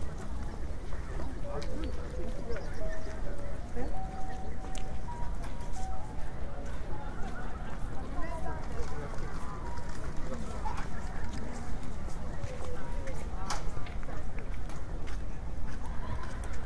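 Footsteps scuff on pavement nearby.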